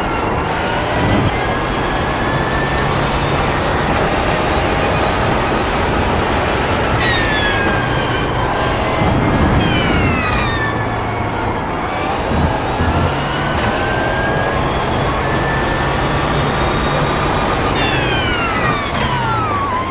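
A race car engine roars loudly, rising in pitch as it speeds up and falling sharply at each gear change and braking.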